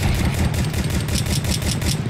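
A pistol fires.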